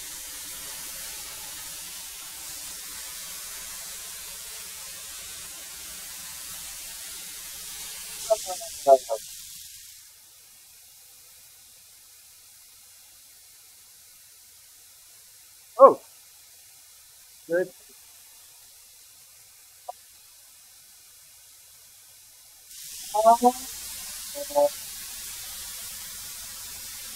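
A thickness planer hums and whirs steadily.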